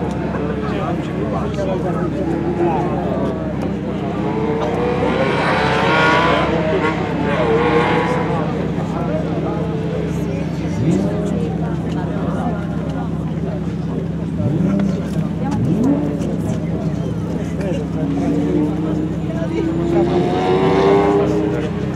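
A Ferrari 512 TR's flat-twelve engine roars as the car accelerates past at speed.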